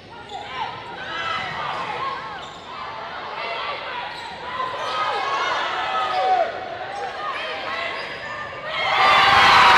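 A volleyball smacks off hands and arms.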